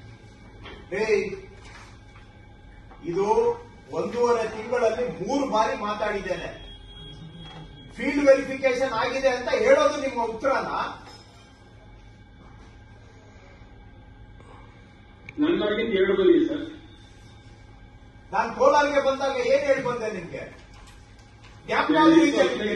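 An elderly man speaks calmly over an online call through a loudspeaker, pausing now and then.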